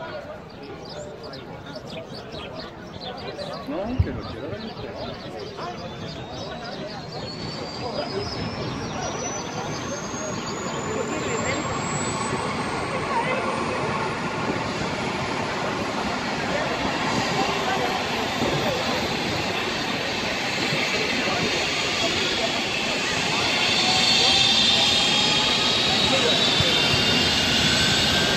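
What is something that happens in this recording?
A helicopter's engine whines and its rotor thumps, growing louder as it spins up.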